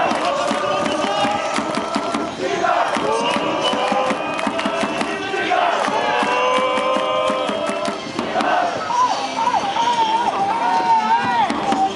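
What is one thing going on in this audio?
A large crowd of fans sings a chant loudly outdoors.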